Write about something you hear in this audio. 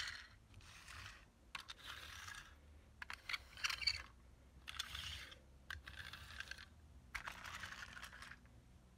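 A toy vehicle rolls across a carpet.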